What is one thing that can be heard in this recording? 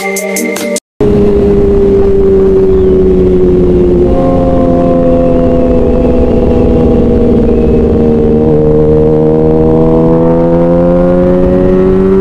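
A motorcycle engine roars loudly at speed, its pitch dropping briefly at each gear change and then climbing again.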